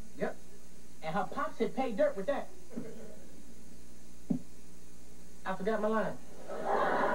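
A second teenage boy answers in an eager voice close by.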